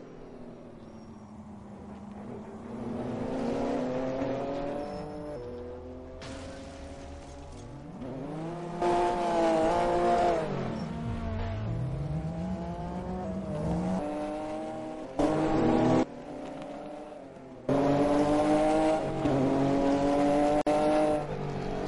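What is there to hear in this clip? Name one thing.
A racing car engine roars, its pitch rising and falling as it revs up and shifts gears.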